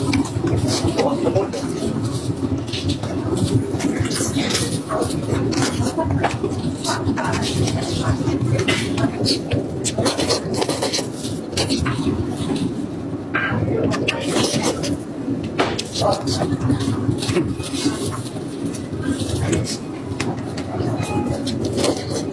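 Plastic-gloved hands tear apart saucy meat close to a microphone.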